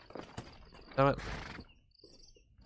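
A horse neighs loudly.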